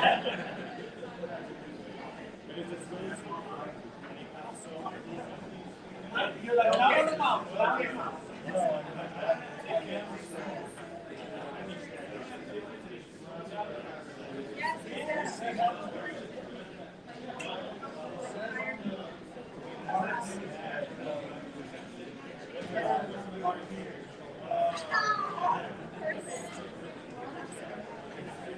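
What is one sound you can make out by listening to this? Several men and women chat at a distance in a room with some echo.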